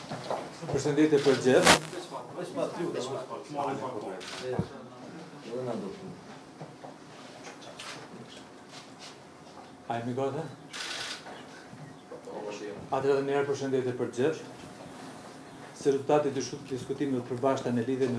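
A middle-aged man speaks calmly into microphones in a room with slight echo.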